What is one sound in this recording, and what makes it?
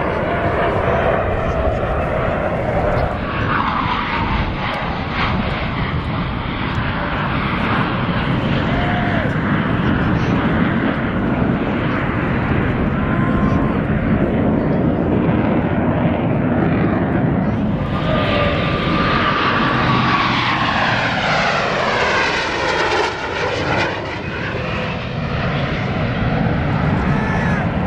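Jet engines roar loudly overhead.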